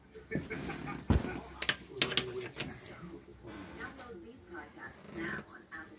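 Cloth rustles as a shirt on a hanger is moved about.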